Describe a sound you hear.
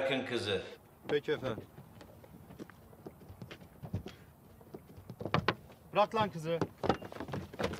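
A man talks on a phone outdoors.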